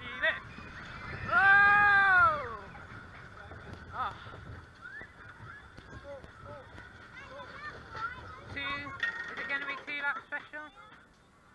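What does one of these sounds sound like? Roller coaster cars rumble and clatter along a track.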